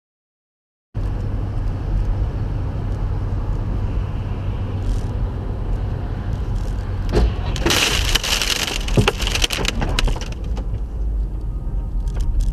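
Tyres roar on a wet road.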